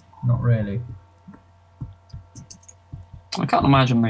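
Fire crackles softly nearby.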